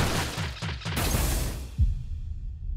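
A burst of energy flares up with a loud rush.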